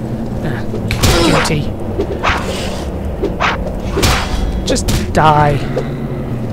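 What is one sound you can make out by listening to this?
A sword strikes a creature with sharp, heavy hits.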